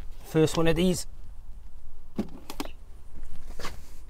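A heavy plastic bucket is set down with a thump on a hard floor.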